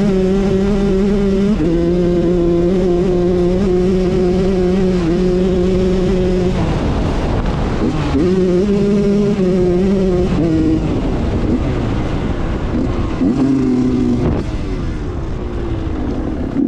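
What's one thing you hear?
A dirt bike engine buzzes loudly close by, its pitch rising and falling as the throttle changes.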